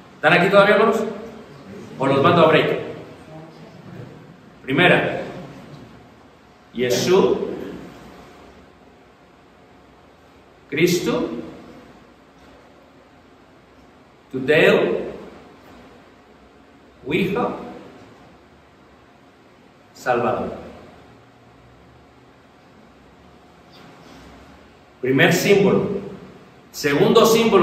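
A man speaks slowly in short phrases with pauses, in a room with some echo.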